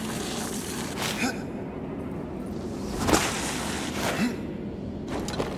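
Rushing air whooshes past during a jump.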